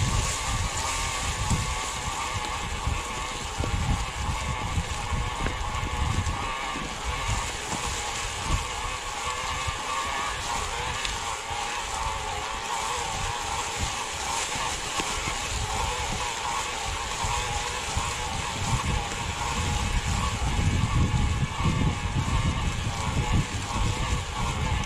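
An electric bike motor whines steadily.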